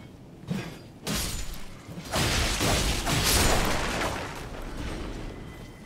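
Blades clash and slash in a fight.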